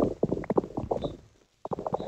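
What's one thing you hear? A block cracks and breaks under repeated digging.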